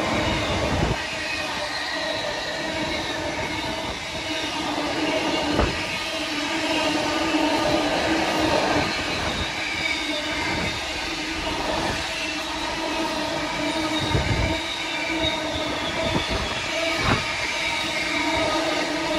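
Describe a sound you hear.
Wheels squeal on the rails.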